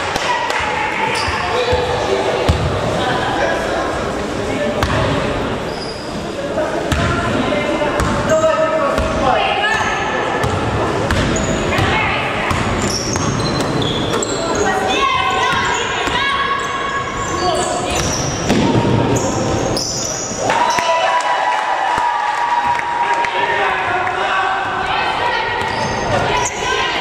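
Young women players and spectators shout and call out in an echoing hall.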